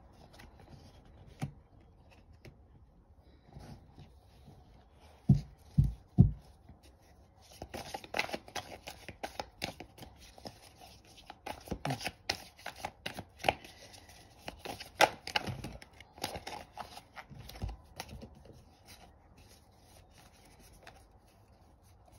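Cards tap and slide on a cloth-covered table.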